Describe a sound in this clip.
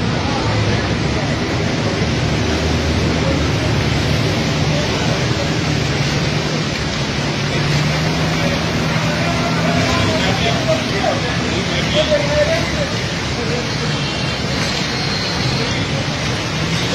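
Floodwater splashes and churns as motorbikes ride through it.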